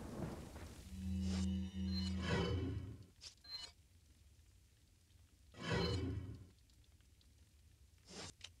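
Short electronic beeps chime in quick succession.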